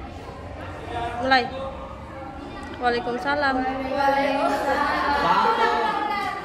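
Several teenage girls talk and laugh excitedly close by.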